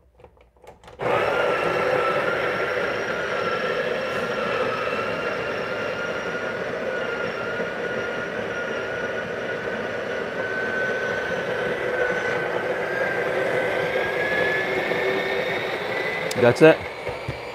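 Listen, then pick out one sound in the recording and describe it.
A coffee grinder whirs steadily with a high whine.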